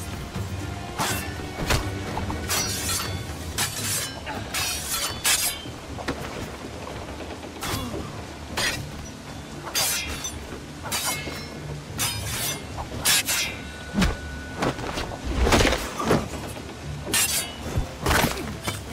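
Swords clash and ring in a rapid fight.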